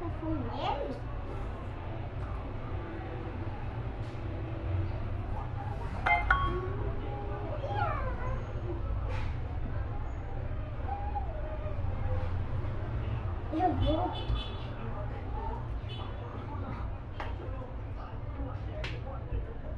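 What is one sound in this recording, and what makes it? A young girl talks and squeals playfully close by.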